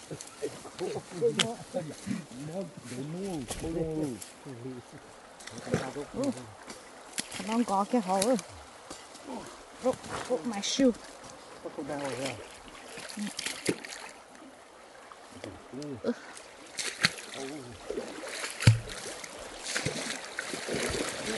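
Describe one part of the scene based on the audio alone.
A shallow stream ripples and trickles over stones.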